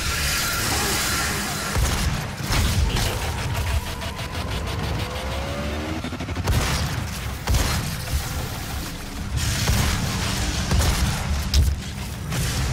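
Heavy gunshots boom in rapid bursts.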